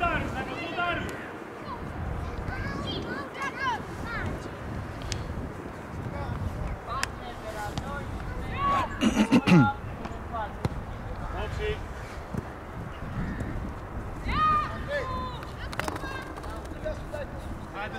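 Young players shout and call to each other across an open outdoor pitch.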